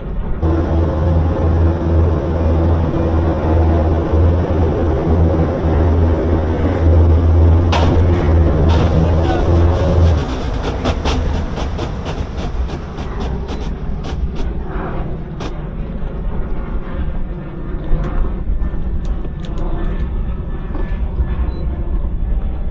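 Water churns and splashes in the boat's wake.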